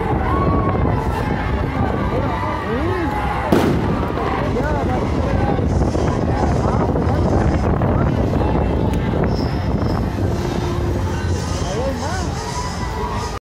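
Men and women in a crowd whistle and cheer.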